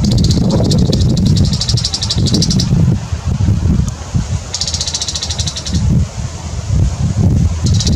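A small bird gives rapid, buzzing chattering calls in bursts.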